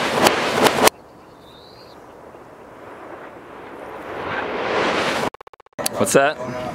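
Rifle shots crack sharply outdoors.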